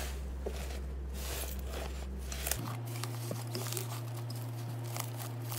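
Sticky slime squishes and crackles under pressing hands.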